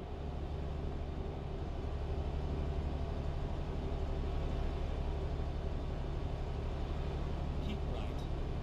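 A truck engine hums steadily at a low pitch.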